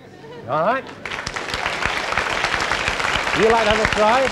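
A crowd of children applauds.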